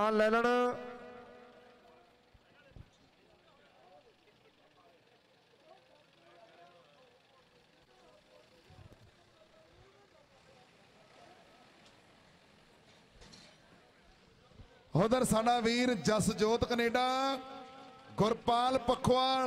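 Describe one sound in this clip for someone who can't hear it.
A large crowd murmurs outdoors.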